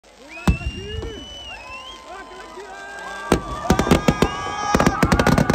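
Fireworks whistle shrilly as they rise.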